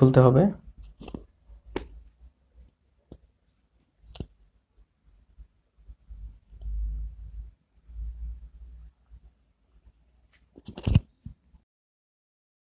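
A ceramic mug clicks and knocks lightly as hands turn it.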